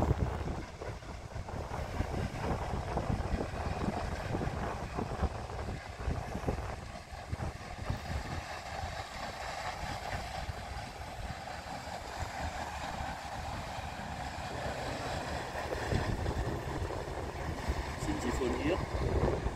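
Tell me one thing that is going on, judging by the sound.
A paddle steamer churns steadily along a river.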